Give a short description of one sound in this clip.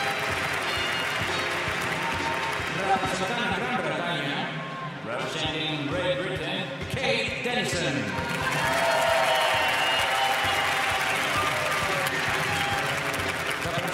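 A large crowd murmurs in an open stadium.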